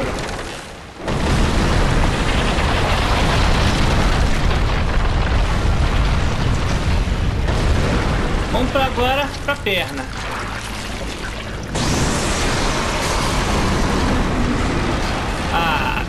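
A huge creature rumbles and crashes around loudly.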